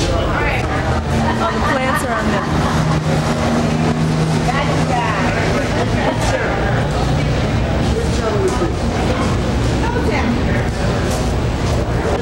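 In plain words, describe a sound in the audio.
Two middle-aged men chat casually outdoors.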